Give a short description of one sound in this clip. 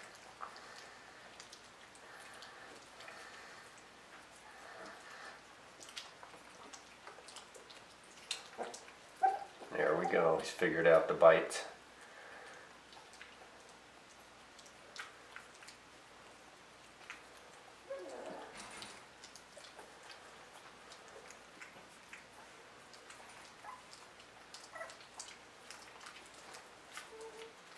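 A puppy licks and sucks softly at fingers.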